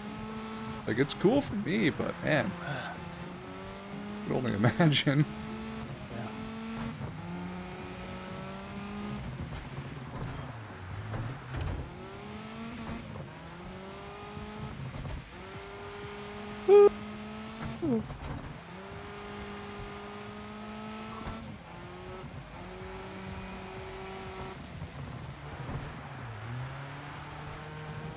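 A race car engine revs high and drops as gears shift.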